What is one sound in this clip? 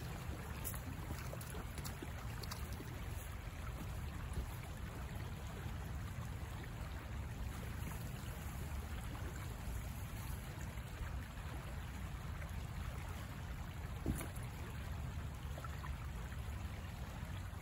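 Twigs and leaves crackle underfoot as a person walks through undergrowth.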